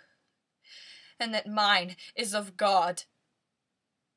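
A young woman speaks close to a microphone, expressively.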